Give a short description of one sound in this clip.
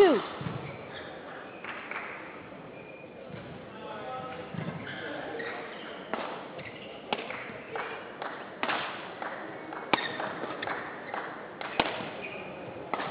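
Rackets strike a shuttlecock back and forth in a large echoing hall.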